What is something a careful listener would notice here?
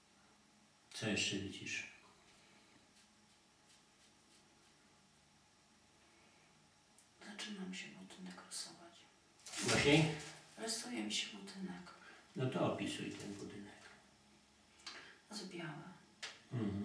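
An elderly man speaks softly and close by.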